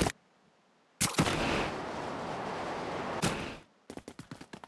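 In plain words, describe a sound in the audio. Air rushes past during a jump.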